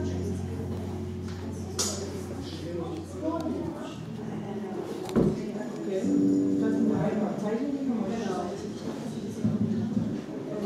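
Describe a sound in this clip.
An electric bass plays a steady line.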